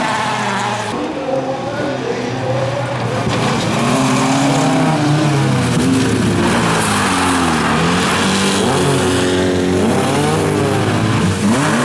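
Tyres skid and scrape on gravel.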